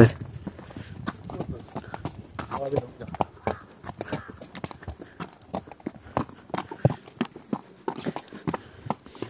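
Horse hooves clop steadily on a rocky trail.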